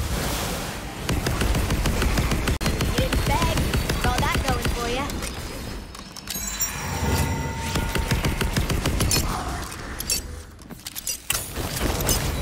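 A video game gun fires rapid shots.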